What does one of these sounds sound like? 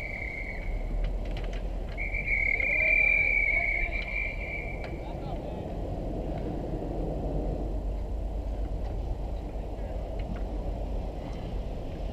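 Hockey sticks clack against each other and the puck.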